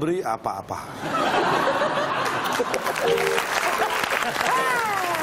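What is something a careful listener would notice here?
People laugh loudly.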